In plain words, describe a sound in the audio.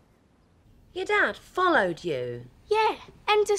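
A young woman exclaims in surprise.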